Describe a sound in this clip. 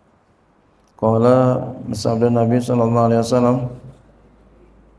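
A man chants in a sustained melodic voice through a microphone.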